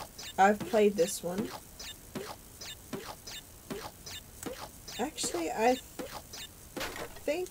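A cartoon character bounces on wooden crates with springy boings.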